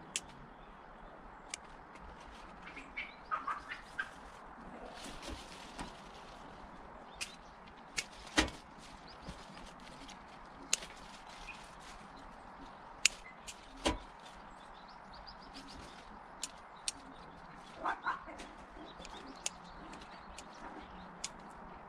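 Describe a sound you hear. Pruning shears snip through woody stems.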